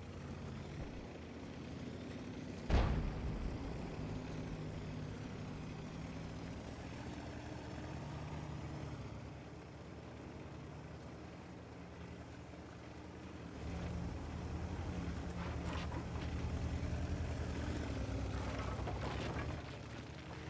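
A tank engine rumbles steadily, growing louder later on.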